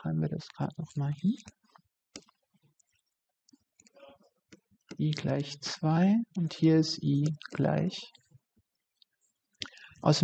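A woman speaks calmly and explains into a close microphone.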